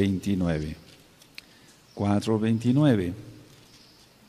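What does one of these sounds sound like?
An elderly man chants slowly into a microphone in a sung voice.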